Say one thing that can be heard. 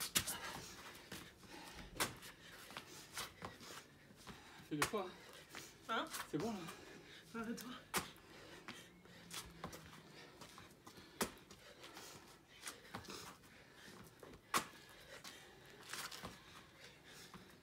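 Hands and feet slap and thump on a stone floor.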